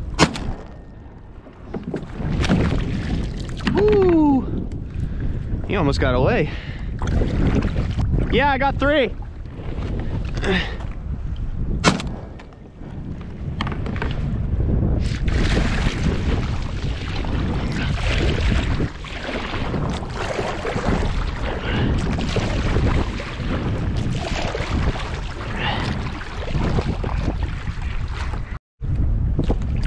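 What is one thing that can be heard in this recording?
Wind blusters loudly across open water.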